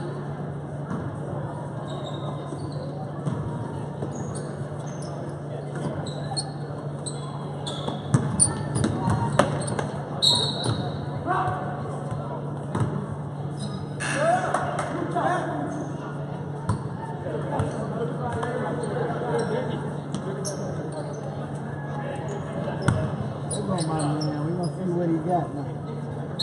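Sneakers squeak on a gym floor in a large echoing hall.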